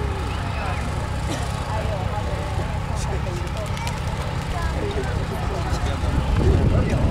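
Men and women chat quietly nearby.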